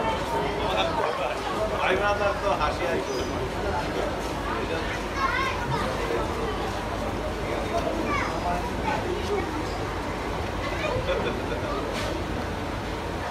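A sheep's hooves shuffle and tap on a hard floor.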